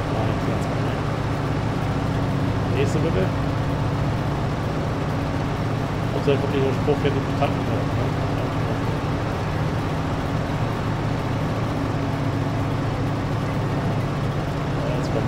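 A harvester engine drones steadily.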